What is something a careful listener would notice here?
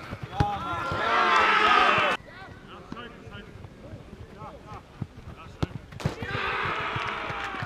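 Young players cheer and shout loudly outdoors after a goal.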